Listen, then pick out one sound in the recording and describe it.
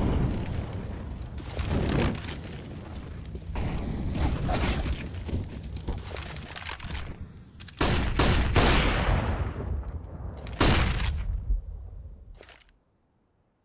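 Flames roar and crackle close by.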